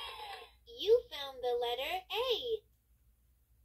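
A toy's small speaker plays a cheerful recorded voice.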